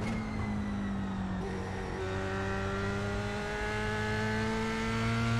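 A racing car engine roars steadily and climbs in pitch as it speeds up.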